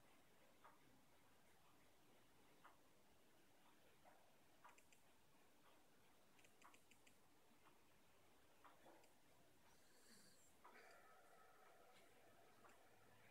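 A finger taps softly on a phone's touchscreen.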